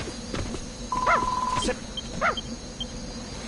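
A dog growls and barks in short bursts.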